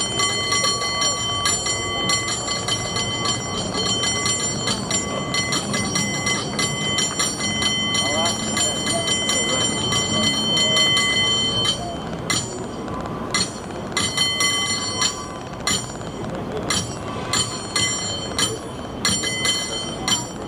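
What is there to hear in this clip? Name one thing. A crowd murmurs nearby outdoors.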